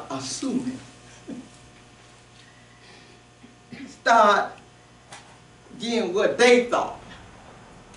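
A woman speaks with feeling in an echoing room, pausing between phrases.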